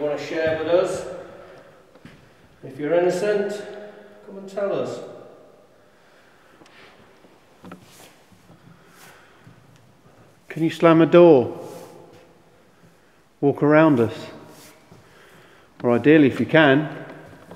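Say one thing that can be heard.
A man calls out loudly in a large echoing hall.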